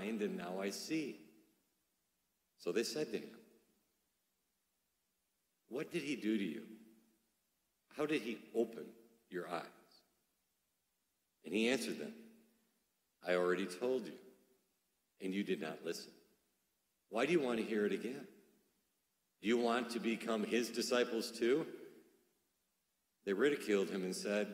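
A man speaks calmly into a microphone in phrases with pauses, in a reverberant room.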